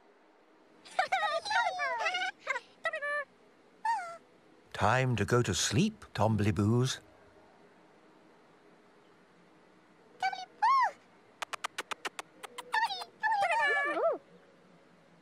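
Small toy-like characters babble in high, squeaky voices.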